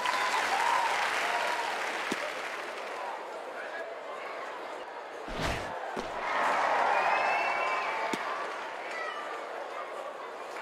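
A stadium crowd cheers and murmurs steadily.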